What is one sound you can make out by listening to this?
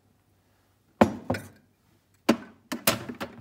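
A plastic water tank clicks into place in a coffee machine.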